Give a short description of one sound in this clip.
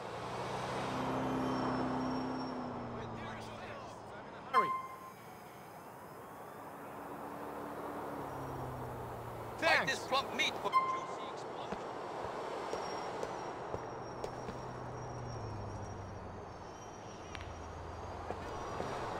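Car engines hum steadily in passing city traffic.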